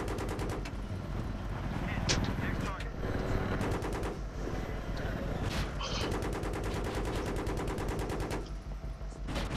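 Rapid gunfire rattles in quick bursts.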